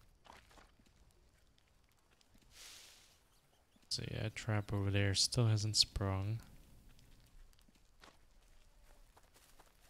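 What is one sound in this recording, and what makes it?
Footsteps crunch through undergrowth on soft ground.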